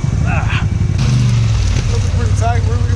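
An engine revs loudly.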